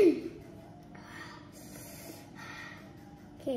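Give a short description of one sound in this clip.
A young girl slurps noodles.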